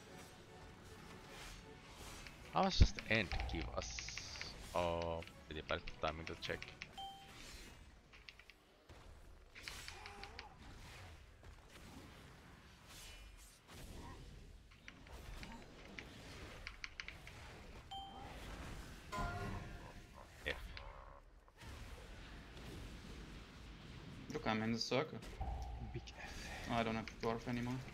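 Game combat sounds of spells and weapon hits clash and burst.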